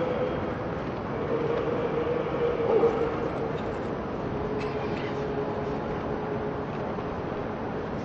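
A choir of men chants slowly with long, drawn-out notes outdoors.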